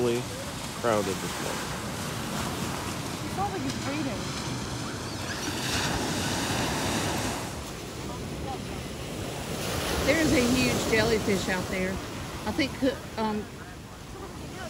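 Waves wash onto a sandy shore.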